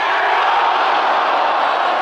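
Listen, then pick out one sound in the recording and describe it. A football is kicked hard toward a goal.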